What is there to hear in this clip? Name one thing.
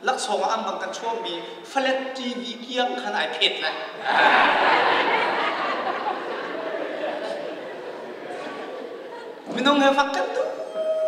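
A man preaches loudly and with passion through a microphone in an echoing hall.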